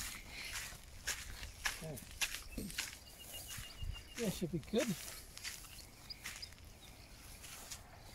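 Footsteps scuff on a dirt track.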